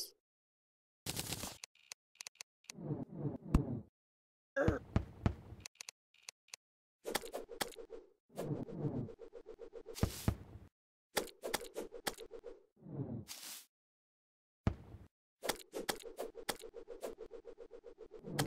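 Hits land on creatures with short thuds and squeals.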